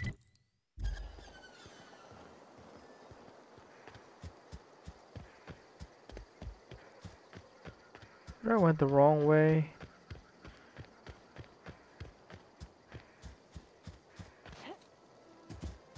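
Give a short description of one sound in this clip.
Footsteps tread steadily over the ground.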